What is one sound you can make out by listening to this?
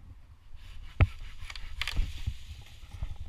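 Twigs snap and crack.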